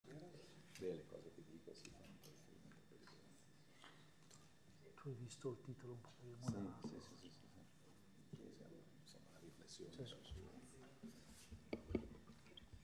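A man speaks calmly into a microphone in a room with a slight echo.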